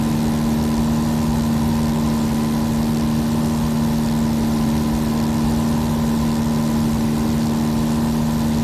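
A small plane's engine drones steadily inside the cabin.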